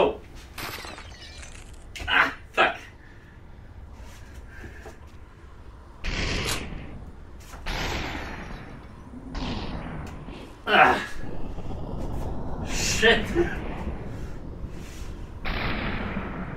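A young man exclaims excitedly nearby.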